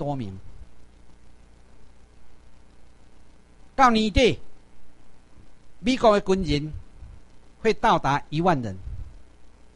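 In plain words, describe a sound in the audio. A middle-aged man speaks into a microphone in short bursts, heard through a loudspeaker in a room.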